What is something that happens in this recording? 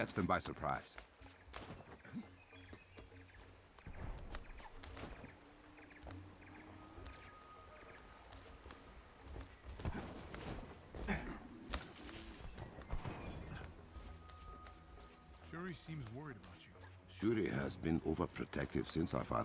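Footsteps run and rustle through leafy undergrowth.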